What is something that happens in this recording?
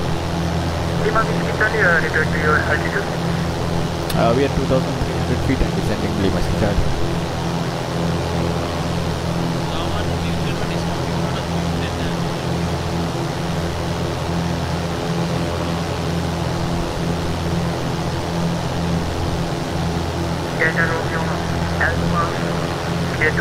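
A young man talks calmly into a headset microphone.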